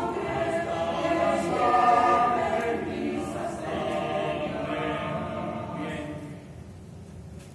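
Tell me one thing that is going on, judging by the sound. A choir sings in a hall, heard from the audience.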